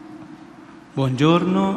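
A crowd begins singing together in a large echoing hall.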